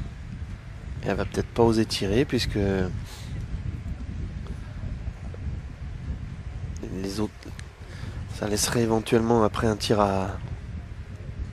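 A woman talks quietly nearby outdoors.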